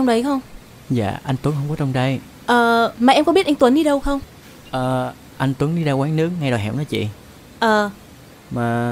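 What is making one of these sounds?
A woman asks questions calmly.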